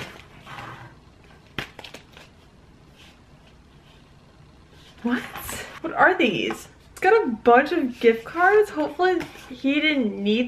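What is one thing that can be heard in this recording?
Paper envelopes rustle in a young woman's hands.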